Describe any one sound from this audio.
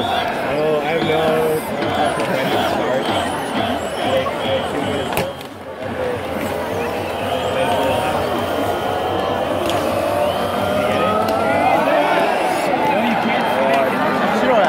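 A huge stadium crowd chants and cheers loudly outdoors.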